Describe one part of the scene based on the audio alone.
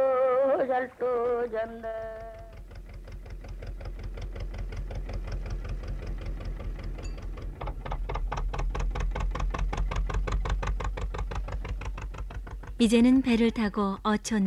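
A motor boat engine chugs steadily.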